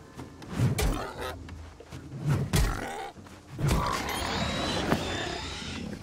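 Heavy blows thud during a fight with a beast.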